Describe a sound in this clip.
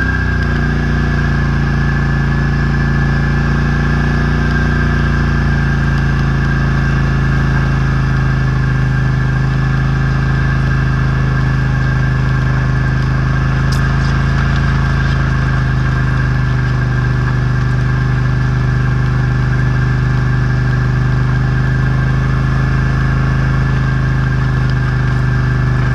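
A metal harrow rattles and clanks as it drags over the ground.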